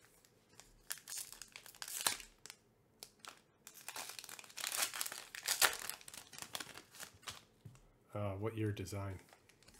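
Foil card wrappers crinkle and tear as hands rip packs open.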